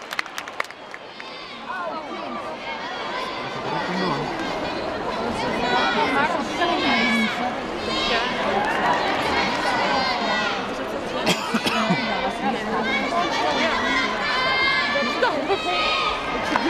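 A crowd of young women cheers and shouts nearby in a large echoing hall.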